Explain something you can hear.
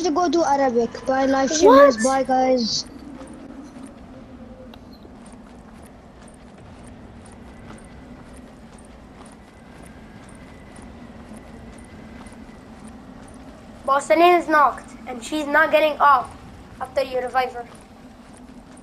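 Footsteps crunch on snow at a steady pace.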